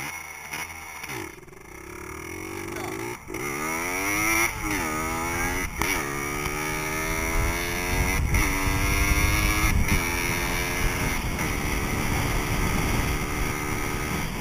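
A motorcycle engine revs up and down, shifting gears.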